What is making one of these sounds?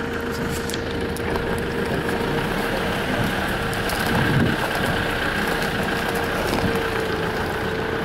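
Wind rustles through shrubs close by.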